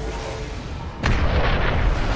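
A heavy body crashes into the ground with a loud thud.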